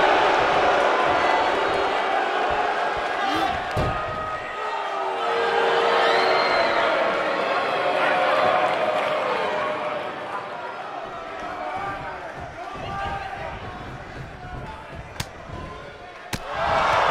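A large crowd cheers and murmurs loudly throughout.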